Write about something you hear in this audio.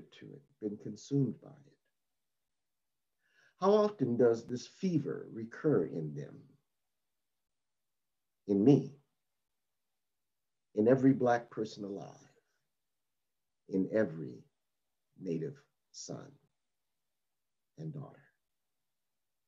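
A middle-aged man speaks calmly and haltingly, with pauses, heard through an online call.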